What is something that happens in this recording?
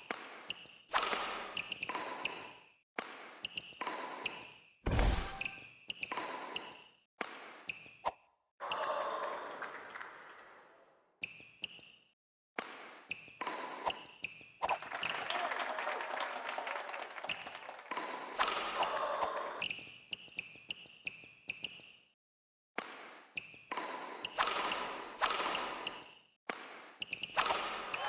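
A racket strikes a shuttlecock with sharp smacks, again and again.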